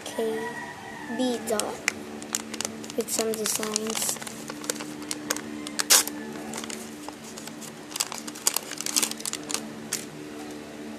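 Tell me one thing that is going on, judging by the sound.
Paper crinkles and rustles as it is unfolded.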